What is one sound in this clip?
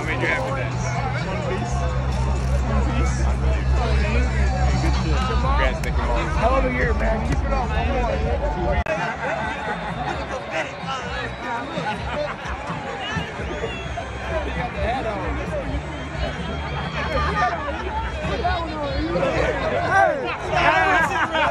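A large crowd chatters and cheers around, in a big open space.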